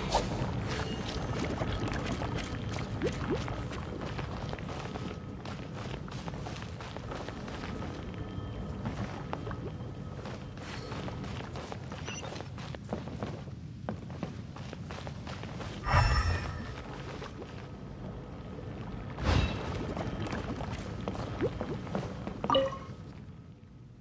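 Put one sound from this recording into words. Footsteps crunch quickly on stony ground.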